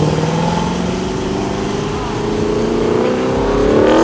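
An old car engine hums as it drives off.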